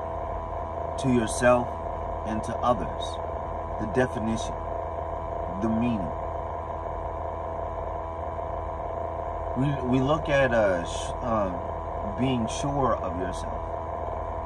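A man speaks calmly and close up, in short phrases.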